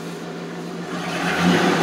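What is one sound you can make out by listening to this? A vehicle engine revs up briefly.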